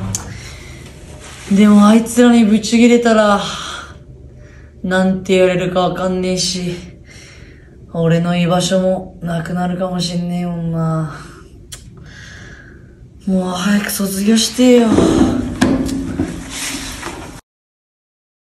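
A young man sings with strong emotion close by.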